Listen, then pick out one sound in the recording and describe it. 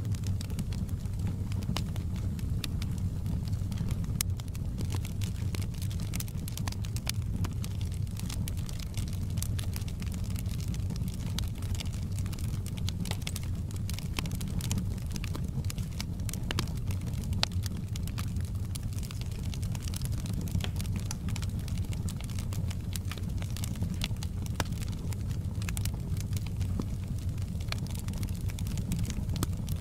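Burning logs crackle and pop.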